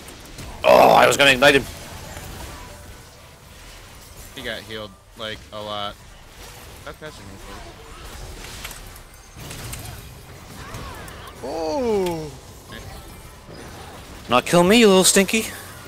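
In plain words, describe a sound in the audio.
Magic spells whoosh and burst in a video game battle.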